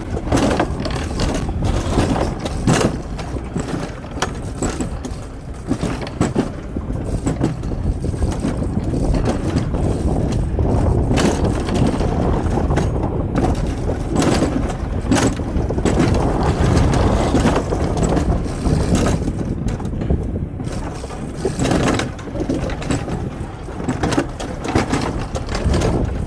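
A coaster sled rattles and rumbles along a metal track.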